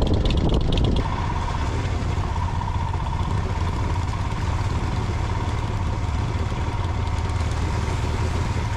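Motorcycle tyres crunch over a rough gravel road.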